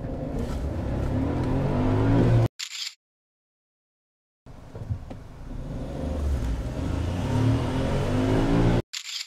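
A car engine revs up, rising steadily in pitch.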